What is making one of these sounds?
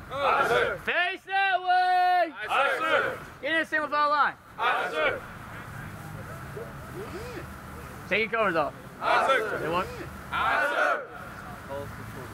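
A man shouts commands loudly outdoors.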